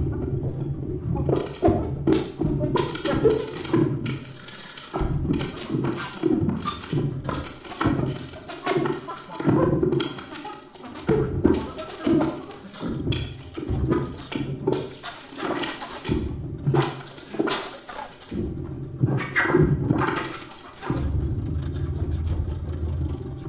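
A small ensemble plays live music.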